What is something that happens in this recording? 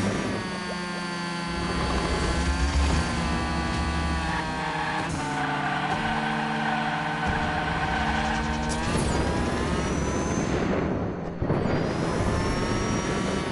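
A racing car engine whines at high revs, rising and falling with gear changes.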